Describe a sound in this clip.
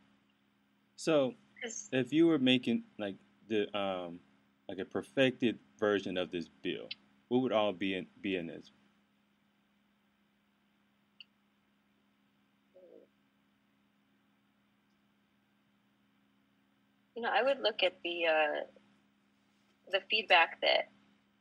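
A woman speaks calmly and clearly into a microphone, with pauses.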